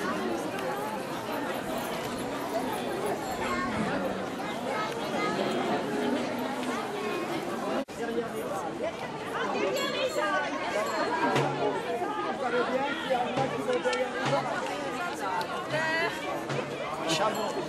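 A crowd of men and women chatters and calls out nearby.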